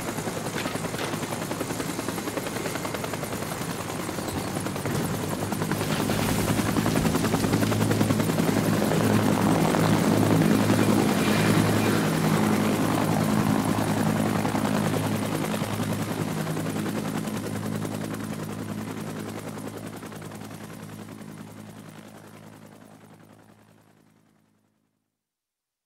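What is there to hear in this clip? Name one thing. A helicopter's rotor thumps and its engine whines as it lifts off and flies away, slowly fading.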